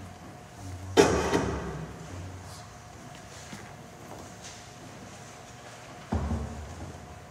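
A piano lid knocks shut with a heavy thud in a large echoing hall.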